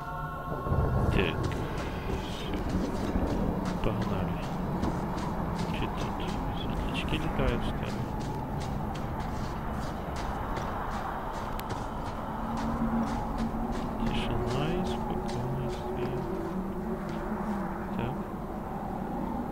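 Armoured footsteps tread steadily over ground.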